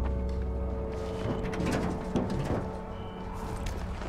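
A car boot lid clicks open.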